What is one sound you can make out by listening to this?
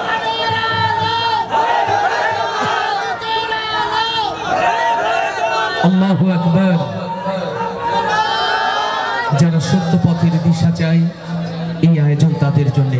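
A man sings loudly through a microphone and loudspeakers.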